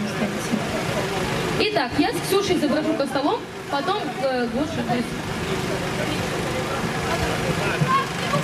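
A crowd of men and women talk and call out nearby outdoors.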